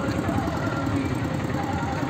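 An auto-rickshaw engine putters past nearby.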